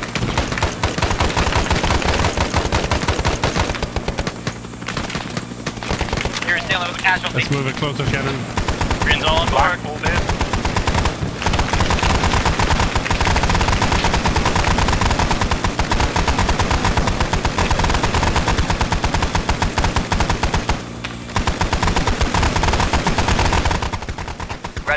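A helicopter's rotor thumps loudly nearby.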